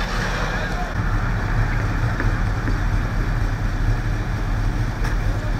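A fire engine's motor idles with a low, steady rumble.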